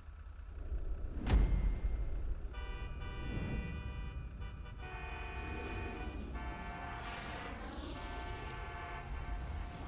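An off-road truck's engine rumbles as it drives over rough ground.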